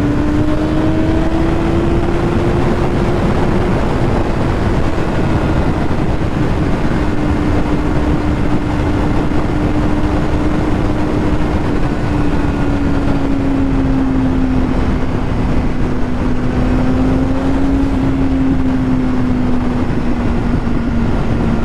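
A motorcycle engine hums steadily at speed, its pitch slowly drifting.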